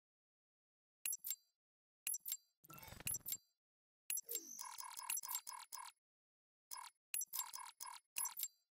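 Short electronic menu beeps and clicks sound in quick bursts.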